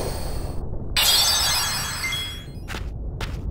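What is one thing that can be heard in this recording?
A healing sparkle tinkles brightly.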